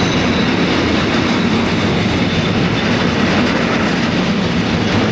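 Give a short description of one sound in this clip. A freight train rumbles past close by, wheels clattering on the rails.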